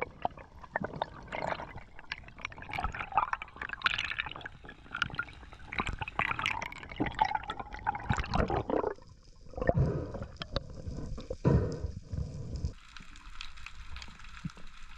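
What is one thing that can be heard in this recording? Water swirls and gurgles around a diver, heard muffled underwater.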